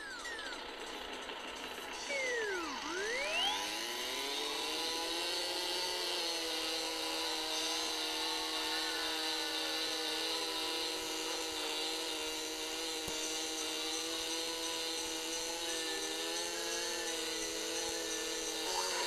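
Kart engines in a racing game hum steadily.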